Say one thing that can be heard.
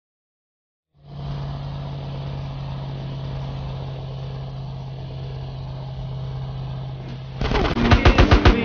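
A motorboat engine hums steadily up close.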